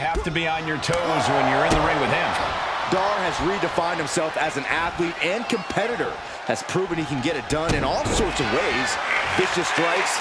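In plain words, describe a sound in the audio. Bodies thud heavily onto a wrestling ring.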